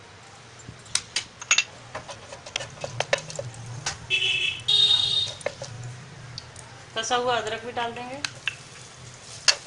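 Hot oil sizzles and spits in a pan.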